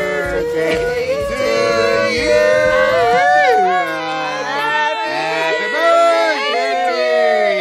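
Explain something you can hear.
A group of men and women sing together close by.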